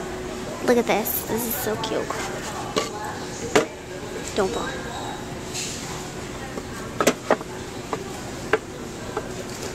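Wooden signs knock and clatter against a shelf as a hand handles them.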